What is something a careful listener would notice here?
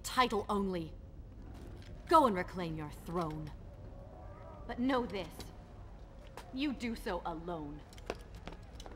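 A young woman speaks calmly and firmly.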